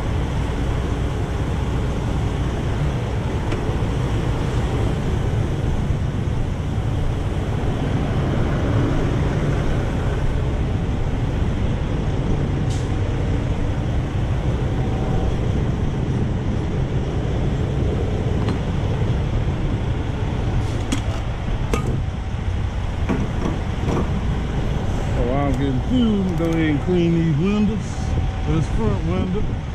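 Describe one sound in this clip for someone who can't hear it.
A diesel truck engine idles nearby with a steady low rumble.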